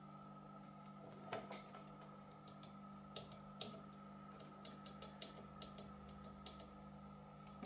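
Plastic parts click and tap softly as they are handled.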